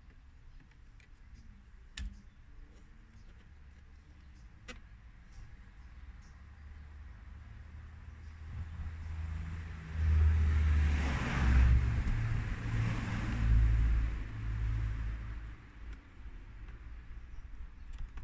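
Plastic parts click and rattle.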